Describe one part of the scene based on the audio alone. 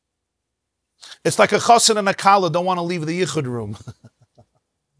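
A middle-aged man speaks with animation into a nearby microphone.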